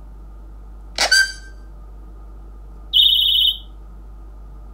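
A phone plays short ringtone chimes, one after another.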